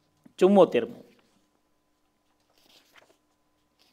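A book's pages rustle as a man turns them.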